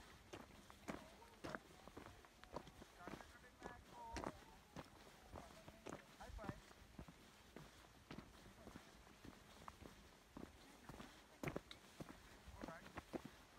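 Footsteps crunch on a loose gravel trail.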